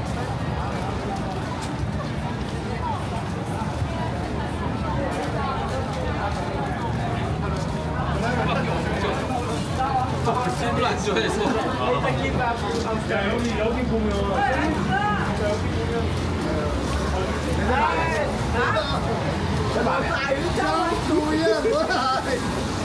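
Footsteps scuff on wet pavement.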